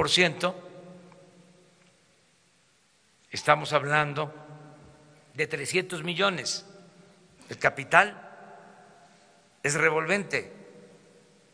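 An elderly man speaks calmly into a microphone in a large echoing hall, with pauses between phrases.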